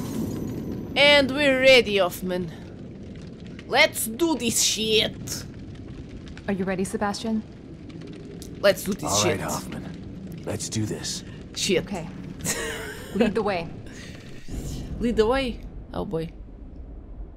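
A young woman talks with animation into a headset microphone.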